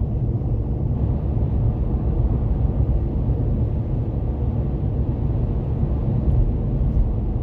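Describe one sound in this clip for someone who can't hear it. Tyres roar on asphalt.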